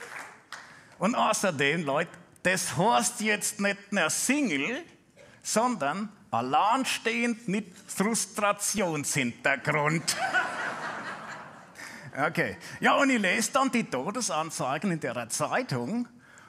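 A man speaks with animation through a microphone in a funny croaking puppet voice.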